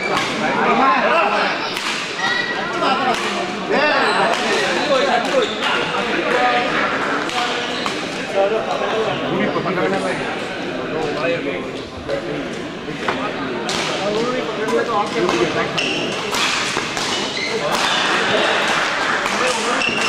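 A crowd of spectators chatters in a large echoing hall.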